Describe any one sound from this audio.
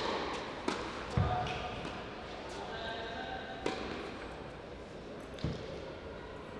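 A tennis racket strikes a ball several times in a short rally.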